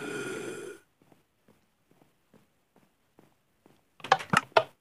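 Soft footsteps patter on wooden planks.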